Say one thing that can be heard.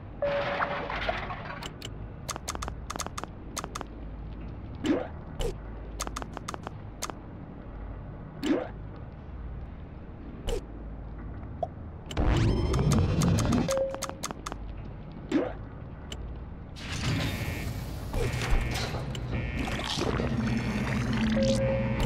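Short game interface clicks and beeps sound repeatedly.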